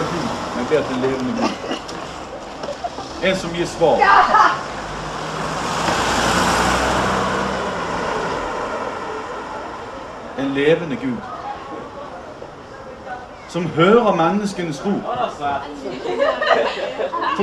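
A man speaks through a microphone and loudspeaker outdoors, reading out in a calm voice.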